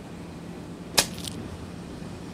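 A scoop of ice cream drops and plops onto the ground.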